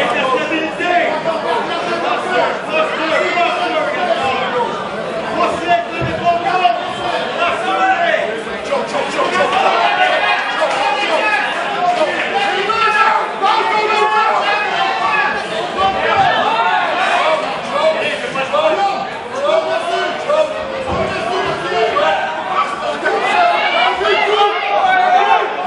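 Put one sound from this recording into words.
A crowd of men and women shout and cheer loudly throughout.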